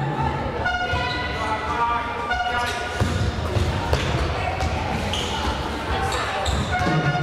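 A basketball bounces with dull thumps.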